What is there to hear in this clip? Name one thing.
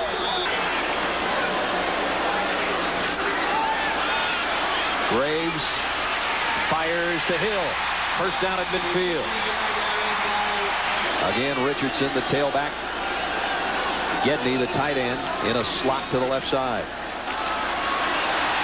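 A large crowd roars and cheers in a big echoing stadium.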